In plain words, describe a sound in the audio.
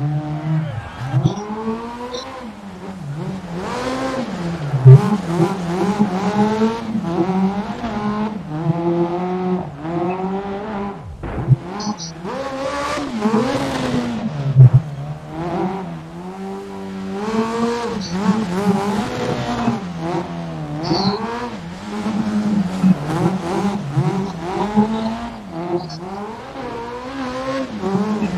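A rally car engine revs hard and shifts gears.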